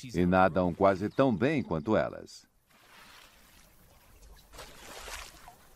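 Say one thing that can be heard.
Water splashes and sloshes as an animal moves in a shallow tub.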